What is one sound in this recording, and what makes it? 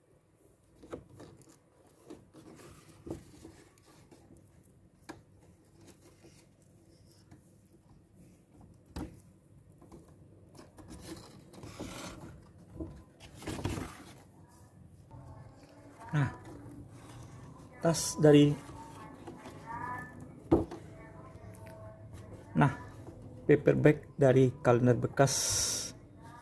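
Paper rustles and crinkles as it is handled up close.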